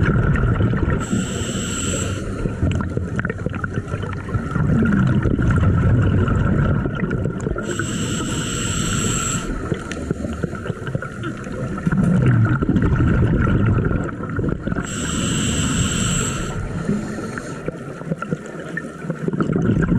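A low, steady underwater rumble of moving water fills the sound.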